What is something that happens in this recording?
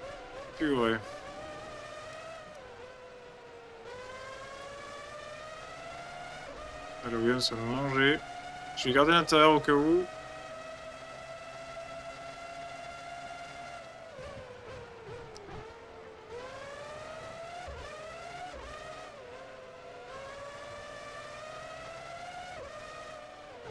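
A racing car engine whines at high revs, rising in pitch as it speeds up and dropping as it slows for corners.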